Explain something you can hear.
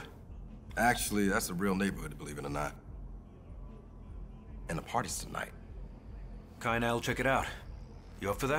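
A young man speaks with animation, up close.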